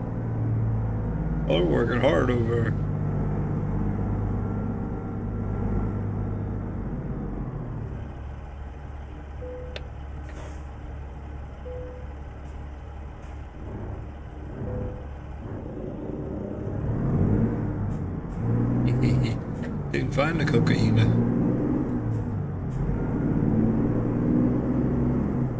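A truck engine rumbles low and steady, rising as the truck pulls away.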